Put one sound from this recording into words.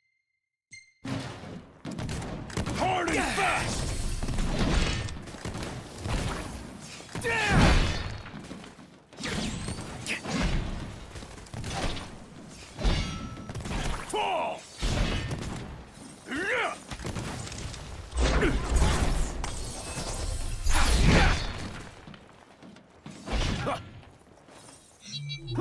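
Magic blasts whoosh and burst loudly.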